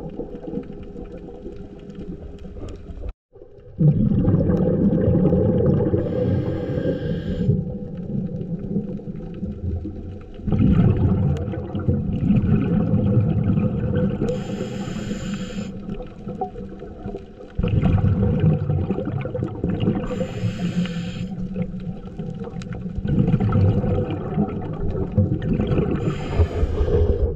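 Water rumbles and churns steadily underwater.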